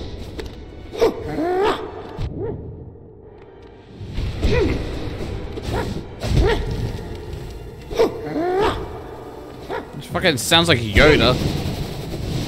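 A creature lets out sharp, gliding cries.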